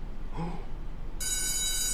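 A young man exclaims in surprise close by.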